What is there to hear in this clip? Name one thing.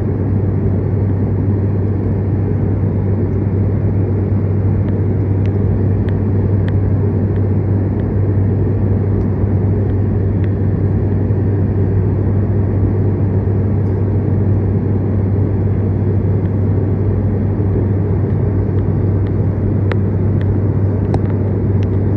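An aircraft cabin hums with a loud, steady, low engine drone.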